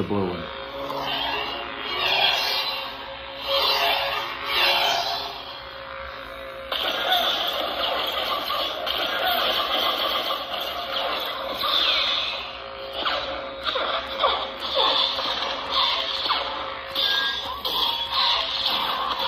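A toy lightsaber hums steadily.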